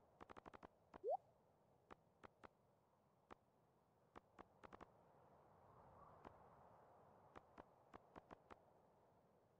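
Soft game menu clicks tick as a cursor moves over items.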